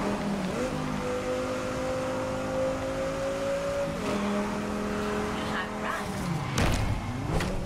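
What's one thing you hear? A car engine revs loudly at high speed.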